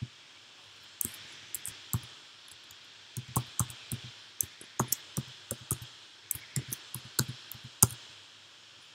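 Keys clatter as someone types quickly on a keyboard.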